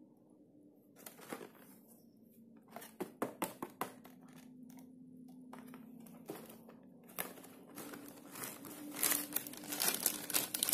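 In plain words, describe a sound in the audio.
Cardboard crinkles and taps as hands open a paper box up close.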